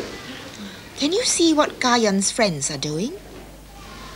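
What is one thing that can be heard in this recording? A woman speaks to a small child, close by.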